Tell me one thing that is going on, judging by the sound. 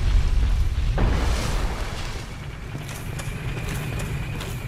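A sword slashes through the air.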